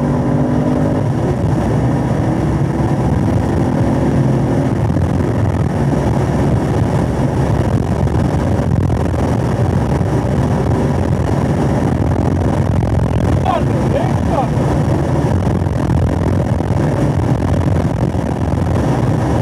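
Wind rushes past a fast-moving car.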